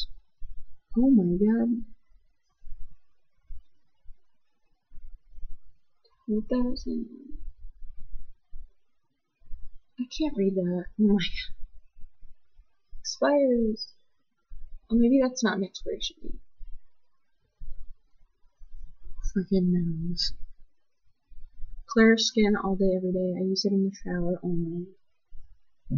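A young woman speaks calmly and close to the microphone, in short bursts with pauses.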